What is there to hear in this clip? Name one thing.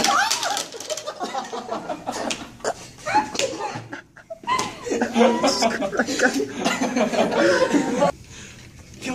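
Several teenagers laugh loudly and hysterically close by.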